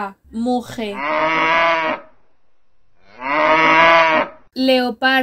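A cow moos loudly.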